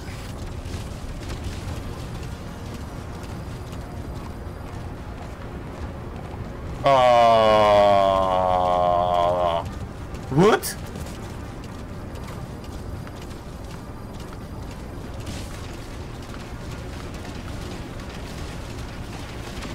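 A horse gallops on dirt.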